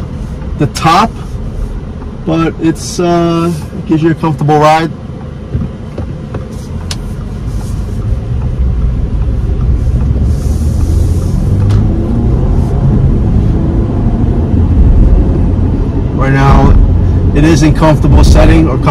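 A car engine hums and tyres rumble on the road from inside the car, growing louder as it speeds up.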